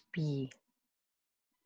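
A woman speaks briefly over an online call.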